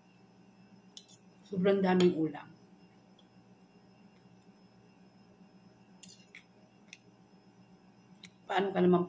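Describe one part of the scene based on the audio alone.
A fork and spoon clink against a plate.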